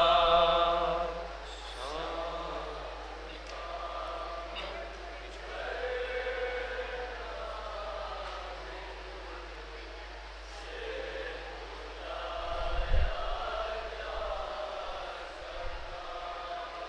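A young man chants a mournful lament loudly through a microphone, with echo.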